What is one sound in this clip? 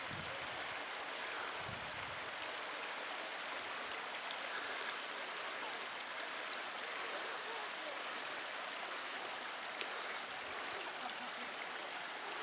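A small stream trickles over rocks.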